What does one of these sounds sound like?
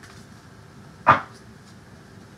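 A card is tapped down onto a table.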